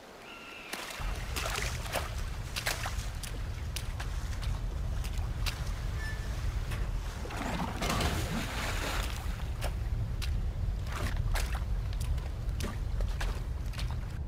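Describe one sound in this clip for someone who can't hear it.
Water splashes around wading feet.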